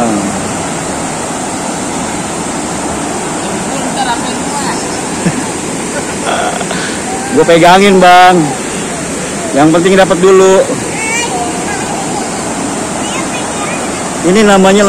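A shallow stream gurgles and rushes over rocks.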